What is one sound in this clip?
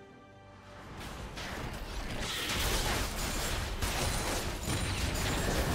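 Magic spells crackle and whoosh in a fast game battle.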